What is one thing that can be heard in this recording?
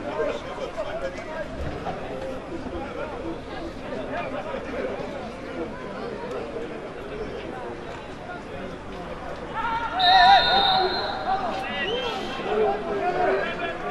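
A small crowd murmurs and calls out in an open stadium.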